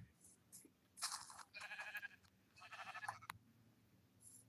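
A sheep bleats nearby.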